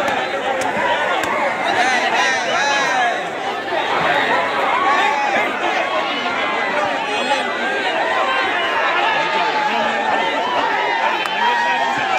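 A large crowd of men shouts and chants loudly outdoors.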